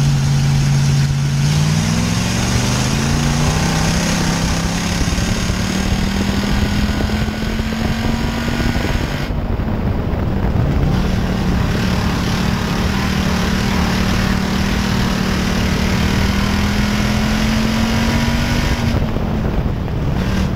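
Tyres rumble and spray over a dirt track.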